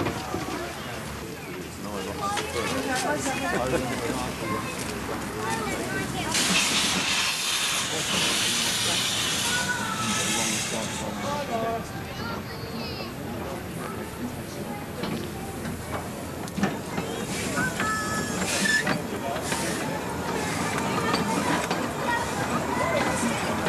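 People chatter nearby in a crowd, outdoors.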